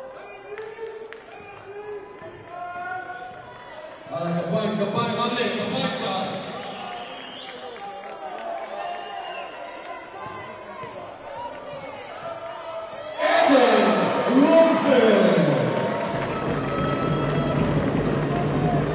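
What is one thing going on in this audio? A crowd cheers and shouts in a large echoing hall, swelling loudly at times.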